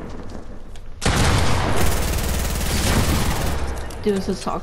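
Rapid gunfire rattles loudly and close by.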